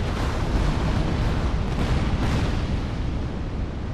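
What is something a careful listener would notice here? A fiery explosion bursts with a loud roar.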